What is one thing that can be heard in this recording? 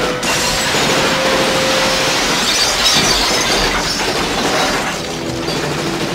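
Debris crashes and clatters down after an explosion.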